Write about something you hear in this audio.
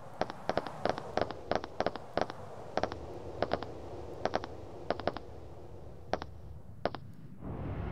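Boots thud in steady footsteps on hard ground.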